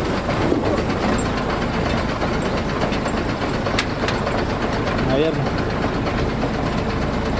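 An old truck engine rumbles loudly as the truck drives.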